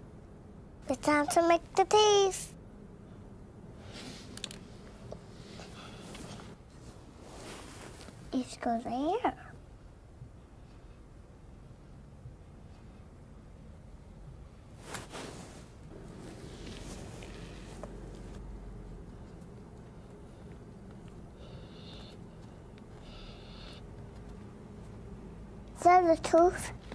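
A young girl speaks in short, bright bursts close by.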